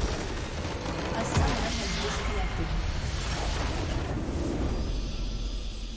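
A structure explodes and collapses with a deep blast.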